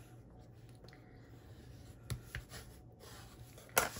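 A bone folder scrapes along a card fold.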